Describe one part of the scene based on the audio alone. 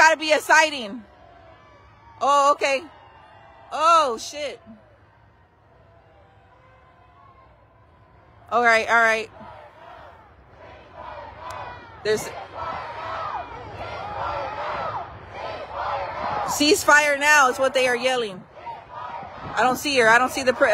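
A crowd of men and women shouts and chants outdoors.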